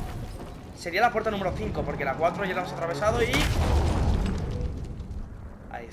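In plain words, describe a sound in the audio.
A heavy wooden door creaks loudly open.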